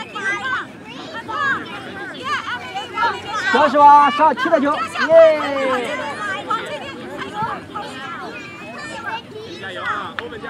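Soccer balls thump as children kick them.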